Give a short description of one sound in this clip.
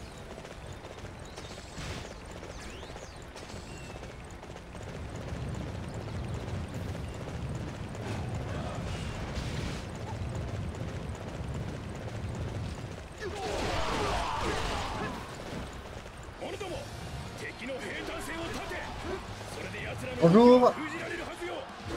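Hooves gallop steadily over the ground.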